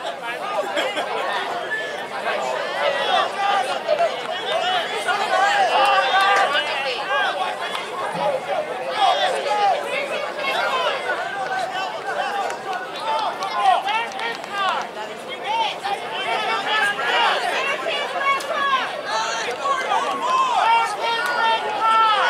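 A crowd of spectators talks and chatters nearby outdoors.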